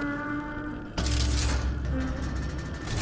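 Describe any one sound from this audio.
A heavy metal door slides open with a loud rumble.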